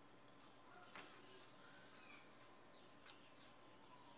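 A plastic ruler taps and clicks on paper.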